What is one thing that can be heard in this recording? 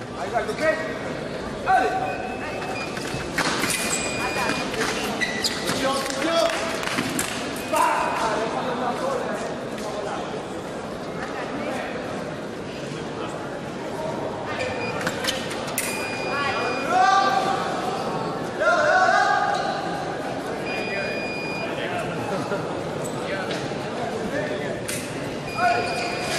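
Fencers' shoes squeak and scuff on the floor in a large echoing hall.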